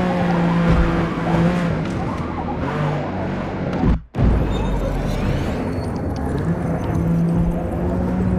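Tyres hum on tarmac.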